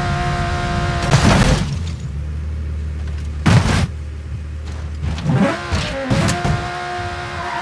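A car crashes and tumbles with loud metal bangs.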